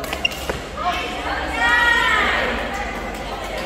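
Sports shoes squeak on a hard court floor.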